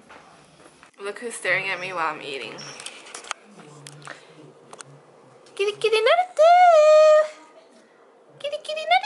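A young woman speaks close by in a lively, sing-song voice.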